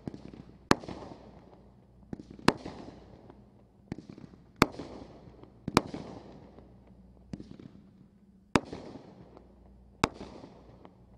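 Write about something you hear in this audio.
Fireworks burst with loud bangs, one after another.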